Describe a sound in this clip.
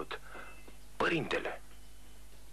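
A man speaks briefly in a low voice.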